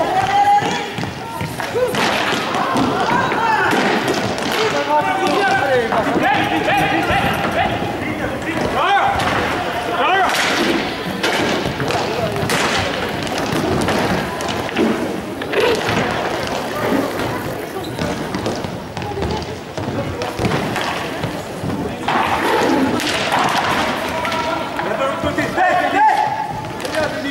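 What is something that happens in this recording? Hockey sticks clack against the ball and the floor.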